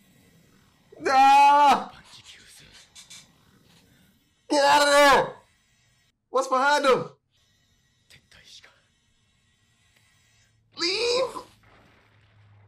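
A young man exclaims and laughs close by.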